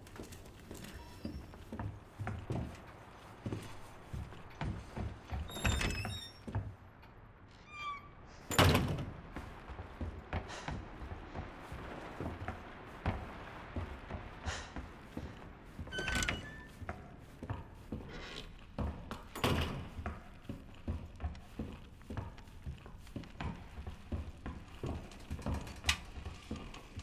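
Footsteps walk steadily across a hard floor.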